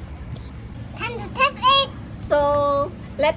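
A young boy speaks cheerfully up close.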